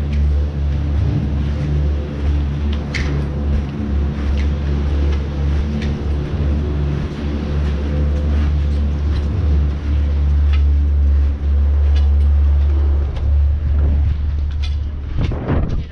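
Ski boots clomp on a metal grating and packed snow.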